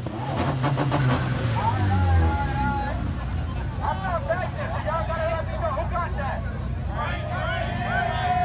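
A large crowd of young people shouts and cheers outdoors.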